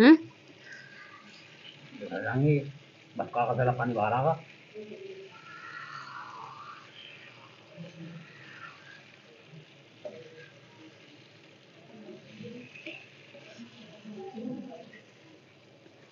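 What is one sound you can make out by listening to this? A spoon stirs thick food in a metal pan, scraping now and then.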